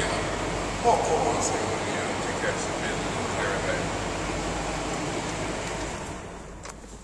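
A man talks on a phone in an echoing space.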